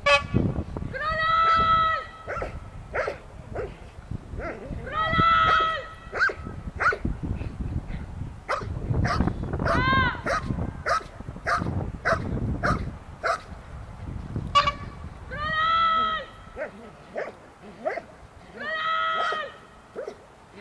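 A man shouts short commands loudly outdoors.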